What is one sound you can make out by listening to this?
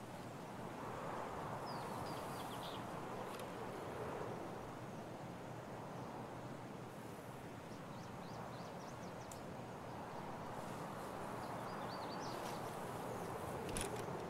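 Tall grass rustles softly as someone pushes through it.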